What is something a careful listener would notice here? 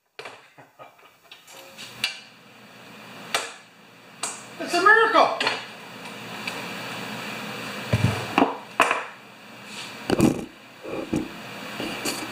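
A plastic lawn mower clunks and rattles as it is flipped over on a table.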